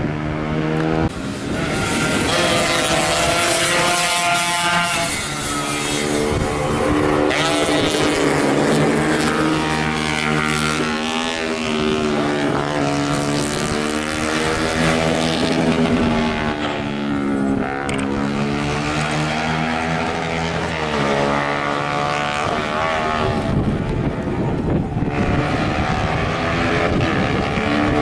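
A motorcycle engine revs loudly as it races past.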